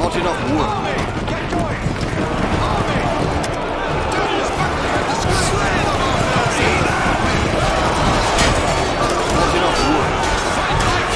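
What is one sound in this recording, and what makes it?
A large battle din of many soldiers shouting and clashing goes on throughout.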